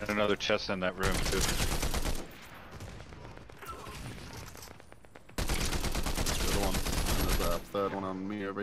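Gunfire bursts from a video game.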